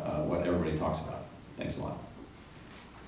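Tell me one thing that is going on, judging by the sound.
A middle-aged man speaks calmly through loudspeakers in a large echoing hall.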